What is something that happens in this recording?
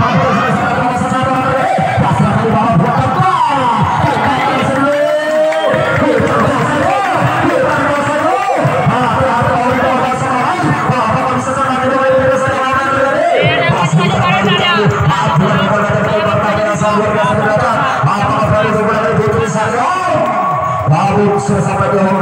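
Young women shout and squeal excitedly.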